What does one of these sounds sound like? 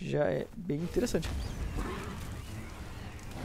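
A dragon breathes a roaring burst of fire.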